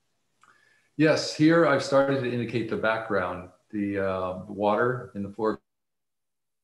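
A man speaks calmly over an online call.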